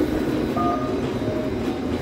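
A metal trolley rattles as it is pushed.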